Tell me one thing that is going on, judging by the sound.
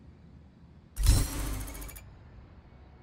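A short electronic whoosh sounds.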